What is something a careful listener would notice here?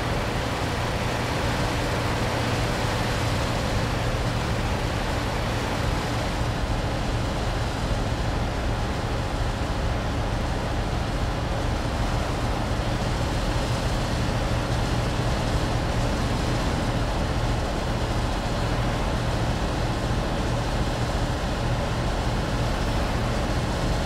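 A truck engine hums steadily at highway speed.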